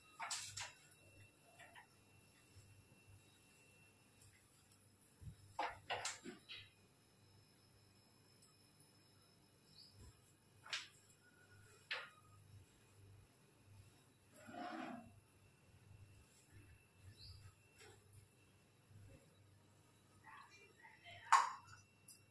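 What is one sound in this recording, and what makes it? A broom sweeps softly across a tiled floor.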